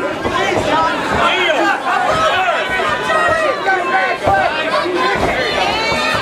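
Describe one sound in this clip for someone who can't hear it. A crowd shouts and cheers loudly.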